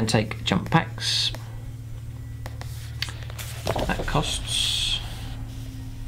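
Paper pages rustle and flip as a book's page is turned.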